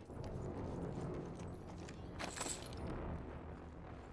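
Footsteps clang on a metal grate.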